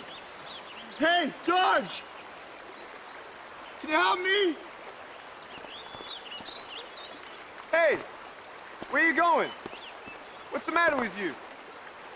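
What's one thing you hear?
A man calls out loudly in short phrases.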